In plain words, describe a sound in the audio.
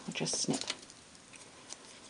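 Scissors snip through ribbon.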